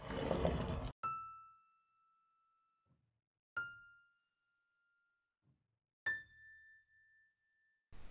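Single piano notes ring out one at a time, with pauses between them.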